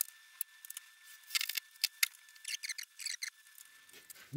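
A power tool clicks and taps softly.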